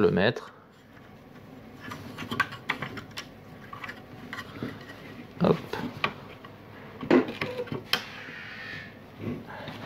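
Small metal parts click and rattle.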